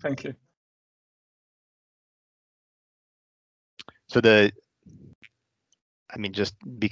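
A man speaks through an online call, in short bursts with pauses.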